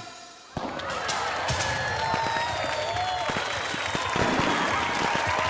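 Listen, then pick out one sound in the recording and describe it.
A crowd cheers and whistles loudly in a large echoing hall.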